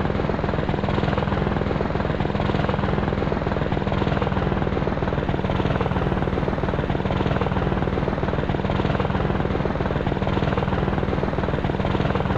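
Helicopter rotor blades thump steadily and loudly, with a whining engine.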